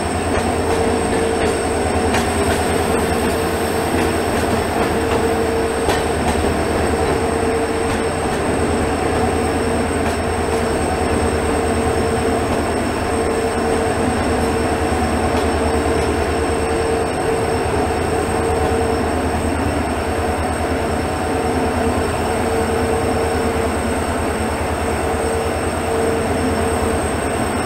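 A diesel locomotive engine rumbles and hums steadily close by.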